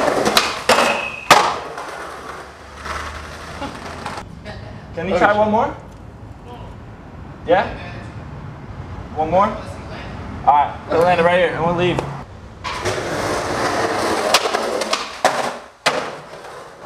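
A skateboard clacks sharply against the ground.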